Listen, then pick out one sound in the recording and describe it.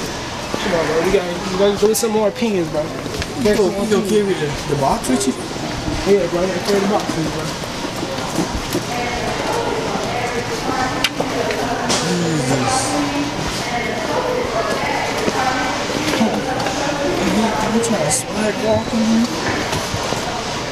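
Boots thud on a hard floor with steady footsteps.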